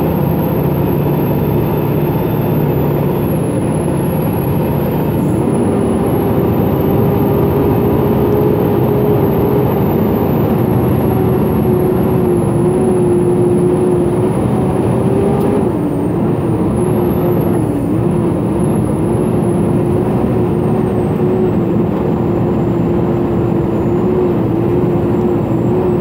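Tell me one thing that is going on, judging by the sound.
Tyres rumble over a gravel road.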